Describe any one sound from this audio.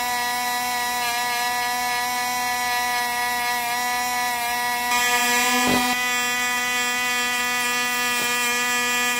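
A small rotary tool whines steadily at high speed.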